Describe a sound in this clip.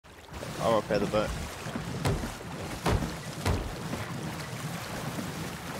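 Rough waves crash and surge around a small boat.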